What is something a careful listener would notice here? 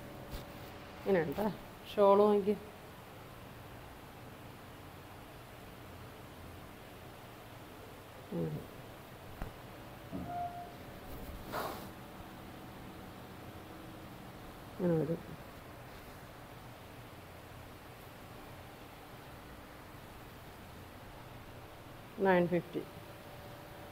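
A woman speaks briefly in short, calm phrases close by.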